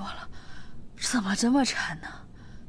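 A young woman exclaims in exasperation.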